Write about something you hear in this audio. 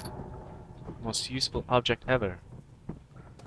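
A small object is picked up with a short rattle.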